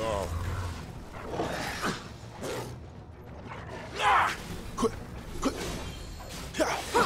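A monstrous creature growls and snarls.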